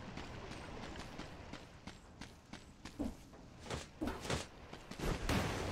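Quick sword slashes swish and strike.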